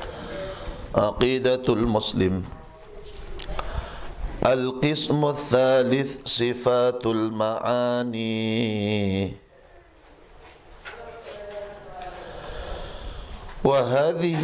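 A man chants a reading aloud in a melodic voice through a microphone.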